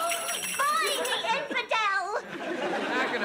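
A woman shouts excitedly.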